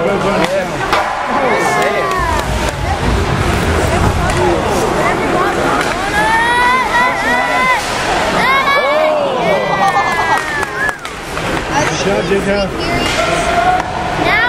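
Hockey sticks smack a puck.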